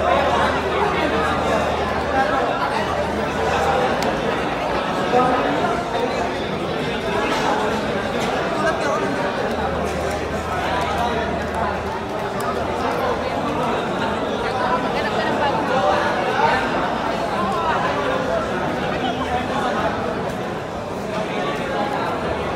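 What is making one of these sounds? Playing cards slap softly onto a mat.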